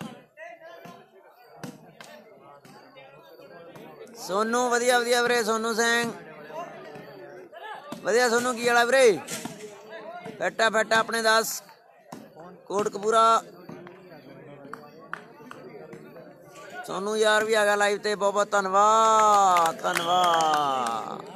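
A volleyball is struck with a slap.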